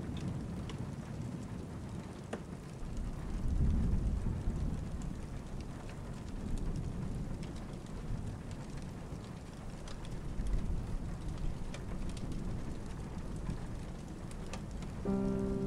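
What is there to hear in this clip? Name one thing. Rain patters steadily against a window.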